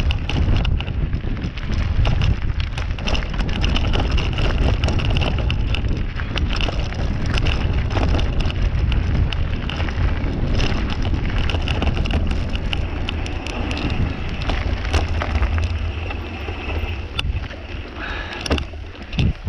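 Bicycle tyres crunch and rattle over a stony dirt track.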